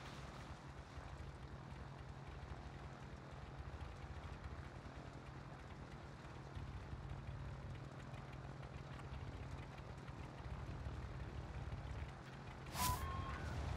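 Propeller engines drone steadily and loudly.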